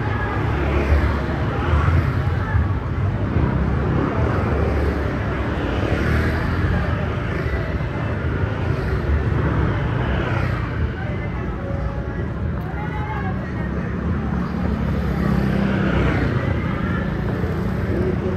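Scooters buzz along a busy street in the distance.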